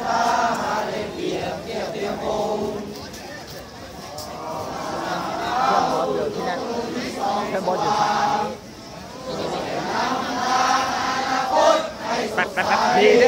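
A large crowd of young men chatters and calls out outdoors.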